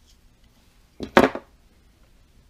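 A metal pin taps against a metal part.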